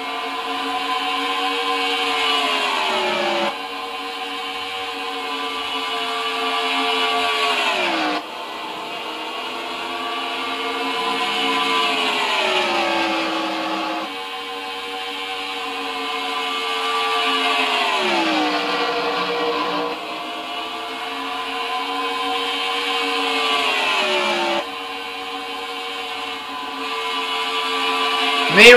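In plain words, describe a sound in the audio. A race car engine roars at high revs, its pitch rising and then dropping again and again.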